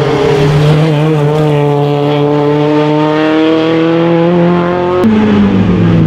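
A rally car engine revs hard and climbs in pitch as the car accelerates past.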